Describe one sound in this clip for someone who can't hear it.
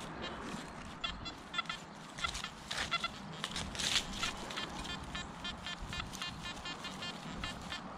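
A metal detector beeps in short, rapid tones as it sweeps over grass.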